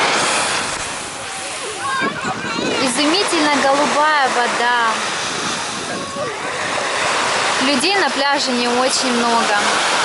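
Small waves wash and break onto a shore.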